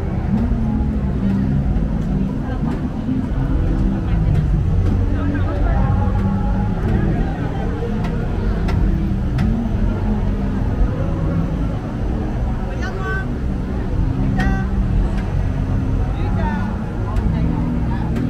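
A crowd of people chatter all around in a large echoing hall.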